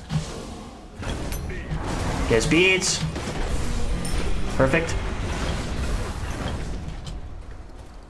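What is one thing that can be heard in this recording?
Magic blasts and weapons clash in a noisy fight.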